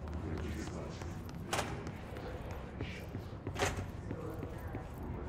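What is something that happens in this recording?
Footsteps run quickly across a floor.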